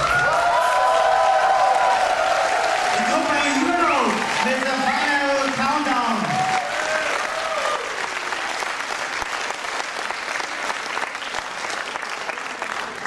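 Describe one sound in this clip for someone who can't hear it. An audience cheers and claps.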